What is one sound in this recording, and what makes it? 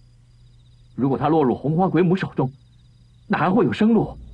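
A young man speaks tensely and close by.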